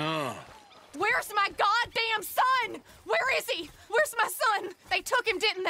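A woman speaks anxiously, heard up close.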